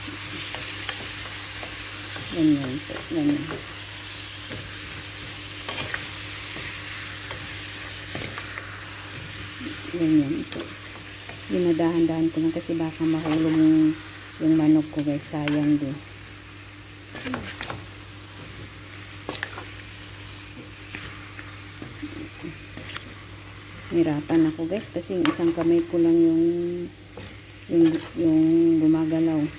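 Food sizzles in a hot frying pan.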